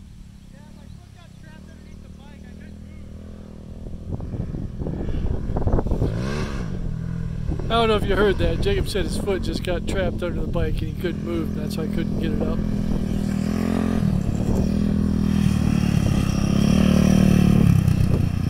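A quad bike engine drones far off, then grows louder and revs as the bike approaches.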